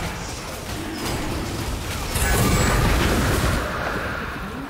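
Magic blasts crackle and boom in a fantasy battle.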